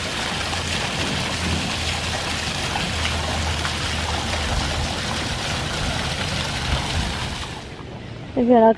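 Fountain jets of water splash steadily into a pool.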